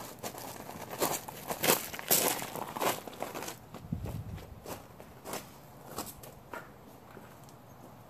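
Footsteps crunch on gravel nearby.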